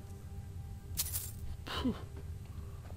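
Coins clink.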